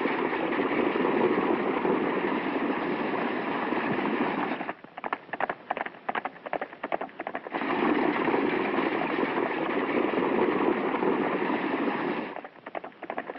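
Horses splash heavily through water.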